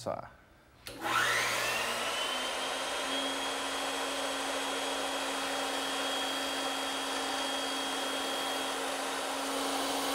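A band saw hums steadily as it cuts through wood.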